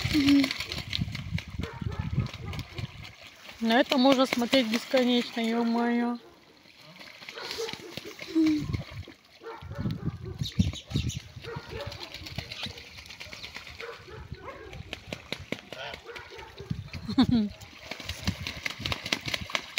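Ducks splash and paddle in a muddy puddle.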